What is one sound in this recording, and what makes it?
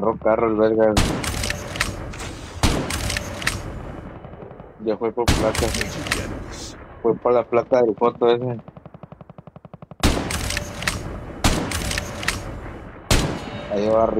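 Rifle shots crack loudly, one at a time.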